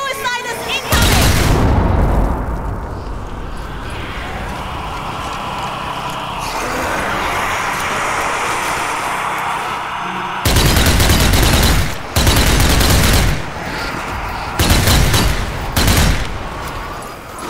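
Automatic gunfire rattles in loud rapid bursts.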